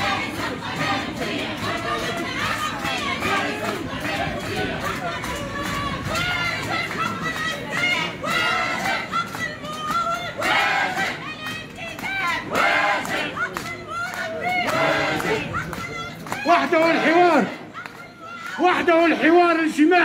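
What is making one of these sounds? A crowd of men and women chants and shouts loudly outdoors.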